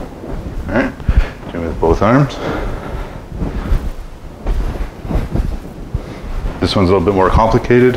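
Feet shuffle and step on a carpeted floor.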